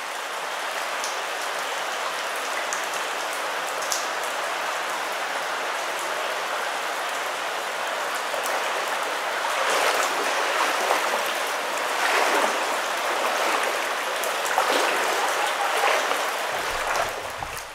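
Water drips and patters from a rock wall.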